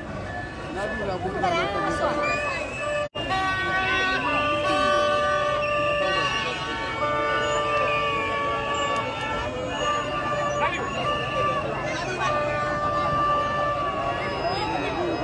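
A car horn blares in long steady blasts.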